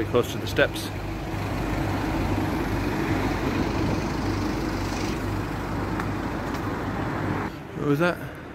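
A car engine hums on a street nearby.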